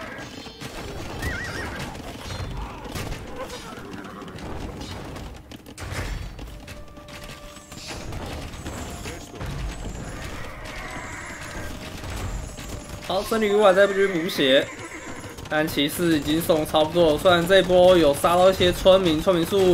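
Swords clash and soldiers fight in a battle.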